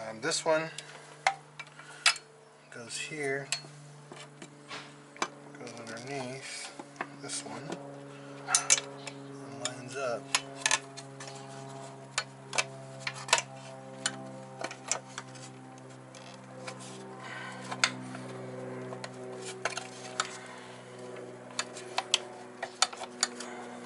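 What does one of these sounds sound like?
Plastic and metal parts click and knock as hands work on an engine.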